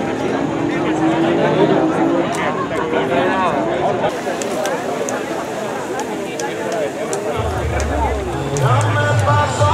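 A crowd of men and women talks and calls out outdoors.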